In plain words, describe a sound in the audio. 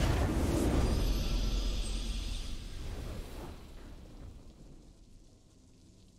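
A triumphant fanfare swells and then fades away.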